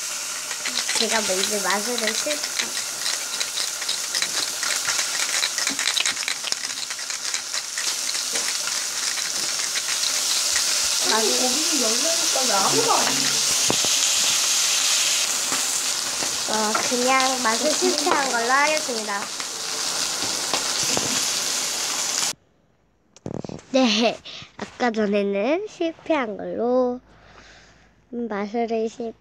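A young girl talks animatedly into a nearby microphone.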